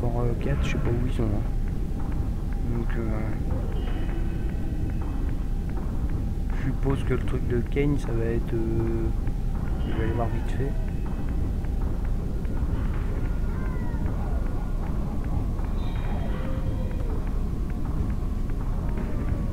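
A glowing blade hums steadily.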